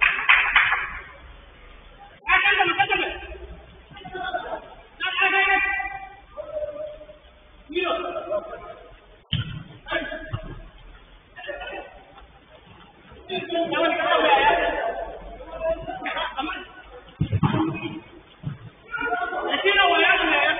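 Young men shout to each other in the distance.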